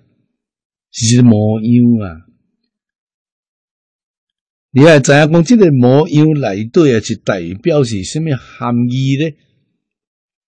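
An elderly man speaks calmly and warmly into a close microphone.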